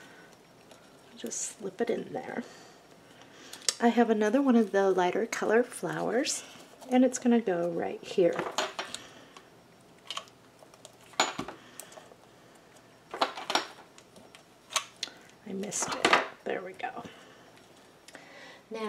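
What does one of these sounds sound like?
Paper rustles and crinkles as it is pressed and handled.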